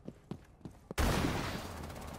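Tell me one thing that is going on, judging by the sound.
A single loud gunshot booms.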